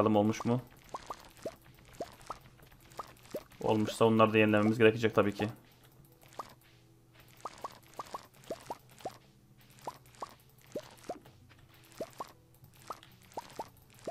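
Short soft pops sound as crops are picked one after another.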